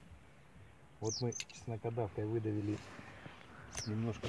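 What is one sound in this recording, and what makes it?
A middle-aged man speaks calmly close by, outdoors.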